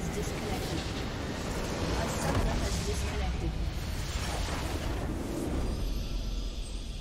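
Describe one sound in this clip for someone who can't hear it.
A base structure explodes with a loud crash.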